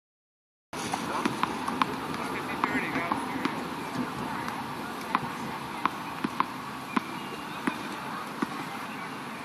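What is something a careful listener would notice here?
A tennis ball bounces repeatedly on a hard court.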